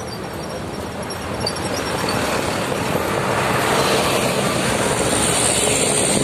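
A truck engine roars close by as the truck passes.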